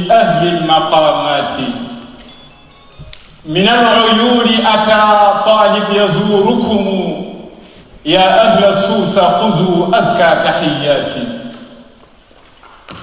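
A young man recites in a slow, melodic voice through a microphone, in a large echoing hall.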